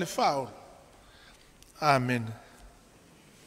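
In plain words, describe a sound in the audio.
An elderly man speaks into a microphone in short, calm phrases.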